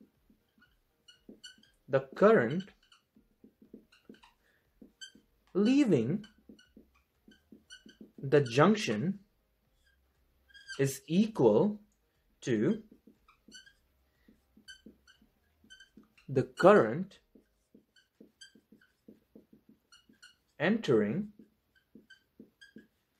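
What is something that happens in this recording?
A marker squeaks and taps softly on a whiteboard.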